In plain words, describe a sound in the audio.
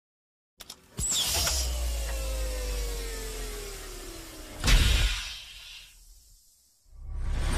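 A heavy metal vault door swings open with a deep rumble.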